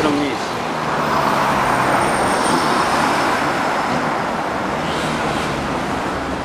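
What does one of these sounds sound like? Cars drive past on a busy road with a steady traffic roar.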